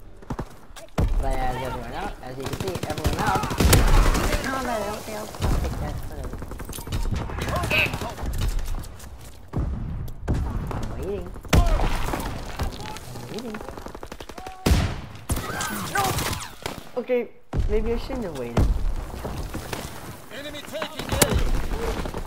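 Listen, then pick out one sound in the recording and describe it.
Shotgun blasts boom, one at a time, with gaps between them.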